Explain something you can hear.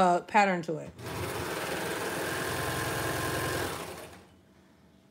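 A sewing machine runs fast with a steady whirring hum.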